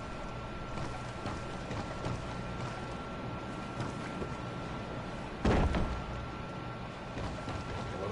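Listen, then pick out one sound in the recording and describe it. Footsteps thud on hollow wooden boards.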